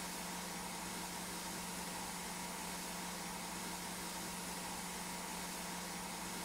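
A pressure washer sprays water onto a car wheel with a steady hiss.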